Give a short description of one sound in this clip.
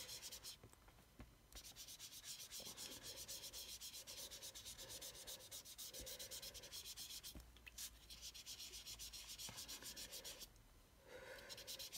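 A foam blending tool scrubs rapidly and rhythmically against paper, with short pauses.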